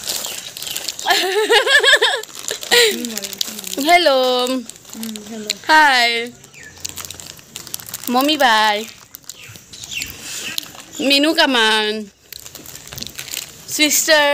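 A young woman talks close to a microphone, lively and with a sing-song voice.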